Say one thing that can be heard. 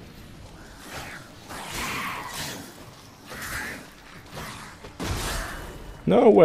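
A sword swishes through the air in quick swings.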